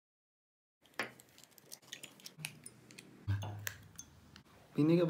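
Eggshells crack against a glass.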